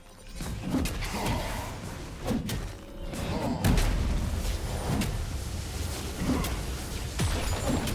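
Magic spells whoosh and crackle as game characters fight.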